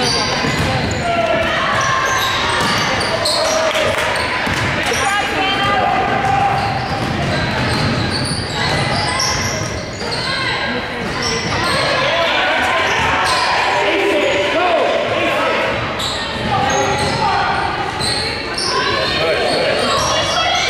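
Spectators and players call out and cheer in an echoing gym.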